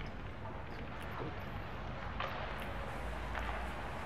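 Skates scrape across ice during a hockey game.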